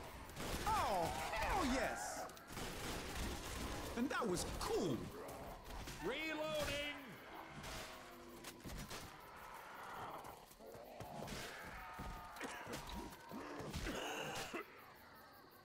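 Zombies snarl and shriek nearby.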